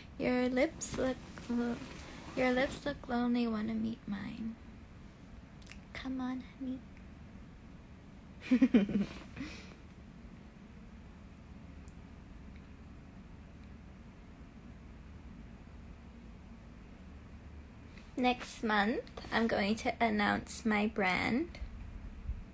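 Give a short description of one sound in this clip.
A young woman talks casually and close to a phone microphone.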